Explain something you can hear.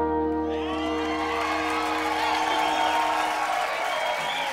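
A band holds a final chord with steel guitar and electric guitars ringing out.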